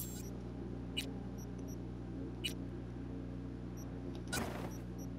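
Soft electronic menu clicks sound now and then.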